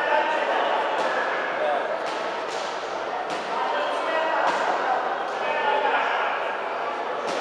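Boxing gloves thud against each other.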